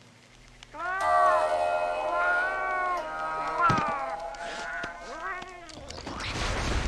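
A woman sings a slow, drawn-out melody.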